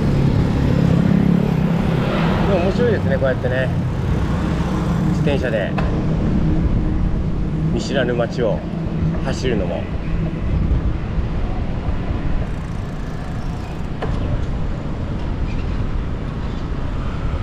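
Motorbike engines hum as they pass.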